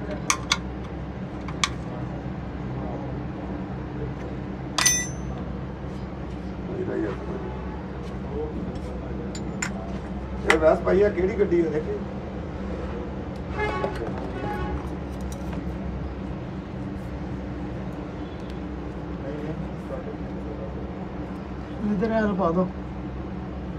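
A metal wrench clinks against a bolt.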